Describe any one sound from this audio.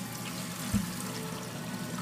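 Water runs from a tap into a bottle.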